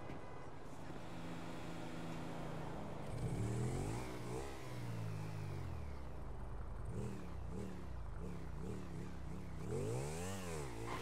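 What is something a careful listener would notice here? A motorcycle engine starts and revs up and down repeatedly.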